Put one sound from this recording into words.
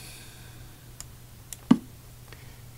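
A chess piece clicks down onto a board.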